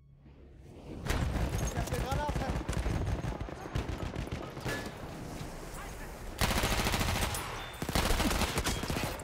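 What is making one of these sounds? Rapid gunfire rattles.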